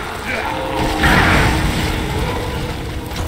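An incendiary grenade bursts into roaring flames.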